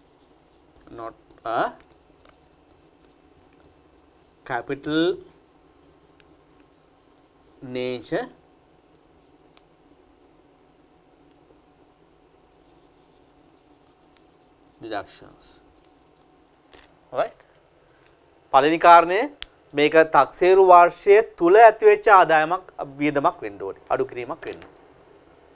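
A man speaks calmly in short phrases, close by in a room.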